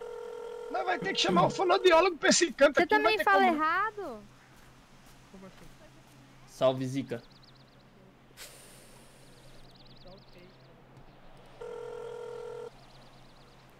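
A phone call tone rings steadily.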